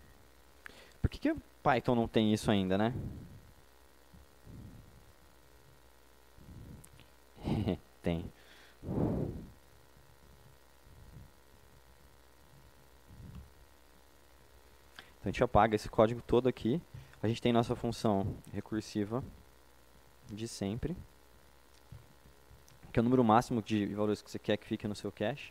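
A man speaks calmly through a microphone in a large hall, with pauses.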